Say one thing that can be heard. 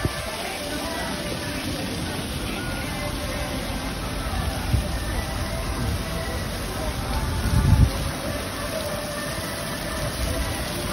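Wind blows across an open outdoor space.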